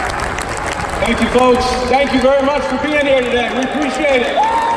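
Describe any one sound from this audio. A man speaks into a microphone over loudspeakers, echoing in a large hall.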